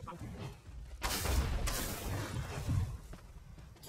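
A fiery blast booms and roars.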